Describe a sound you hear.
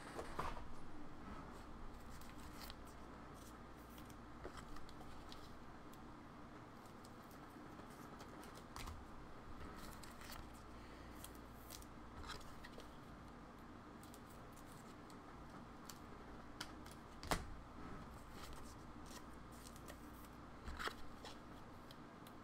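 Keys on a keyboard click now and then.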